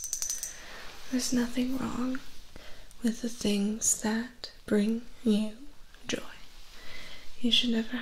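A young woman speaks softly and slowly, very close to a microphone.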